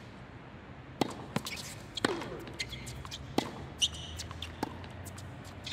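A tennis ball is struck with sharp pops, back and forth.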